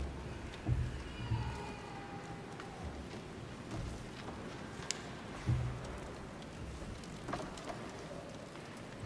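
A few adults murmur quietly in a large echoing hall.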